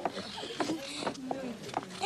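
Children chatter and laugh nearby.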